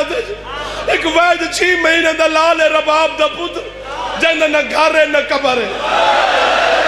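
A young man orates passionately into a microphone over loudspeakers.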